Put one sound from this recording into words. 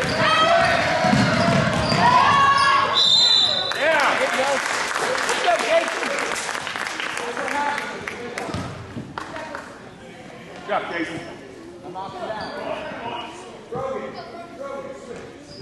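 A basketball bounces on a wooden gym floor.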